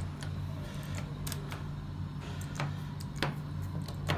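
An elevator button clicks.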